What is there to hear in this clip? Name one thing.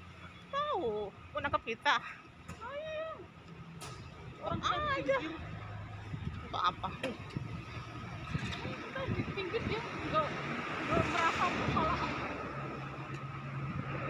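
A young woman talks calmly close by, outdoors.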